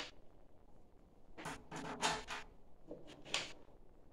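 Small metal parts clink on a table.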